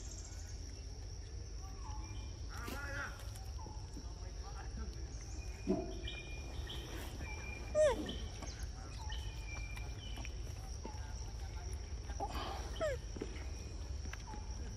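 Monkeys chew and munch on fruit up close.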